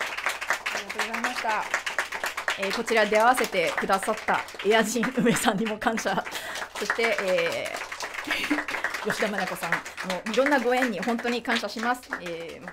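A woman sings.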